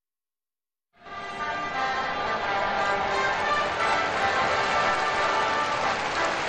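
A brass band plays trumpets loudly in a large open stadium.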